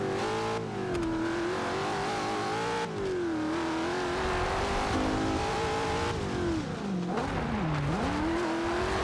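A sports car engine roars loudly, revving up and dropping between gear changes.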